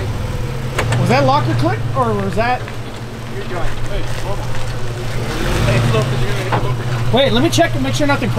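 A man outdoors speaks calmly.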